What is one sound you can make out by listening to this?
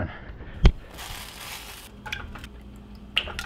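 Milk pours into a hot pan and sizzles.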